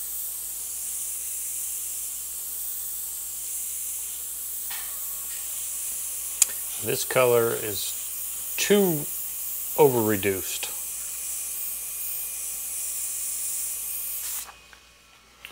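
An airbrush sprays with a steady, airy hiss.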